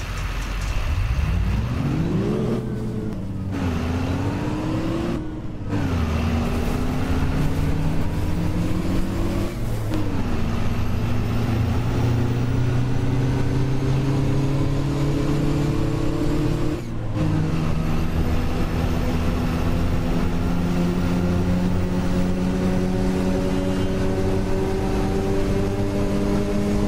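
A bus engine revs up, drops as gears change, and climbs again.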